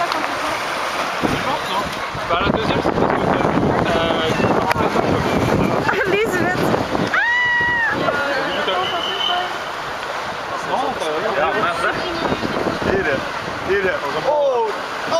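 A crowd of children and adults chatter and shout in the distance outdoors.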